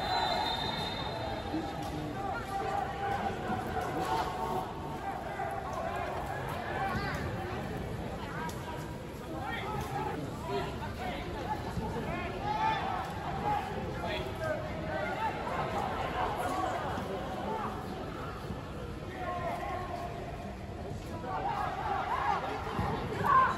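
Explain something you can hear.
Young men shout and call to each other outdoors in an open, echoing stadium.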